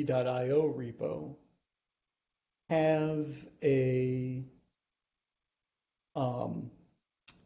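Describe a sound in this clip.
A man speaks calmly in short phrases through a microphone, heard as on an online call.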